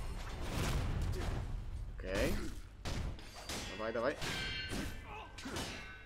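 Swords clash and ring with metallic clangs.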